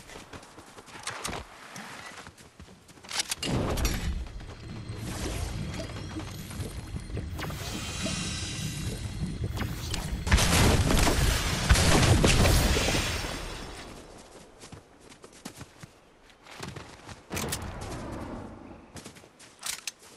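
Footsteps patter quickly over grass.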